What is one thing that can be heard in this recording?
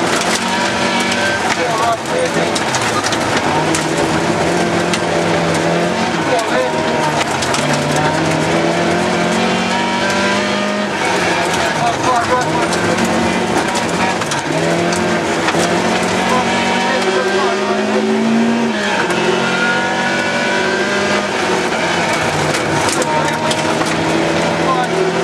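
A car engine roars loudly, revving up and down through gear changes.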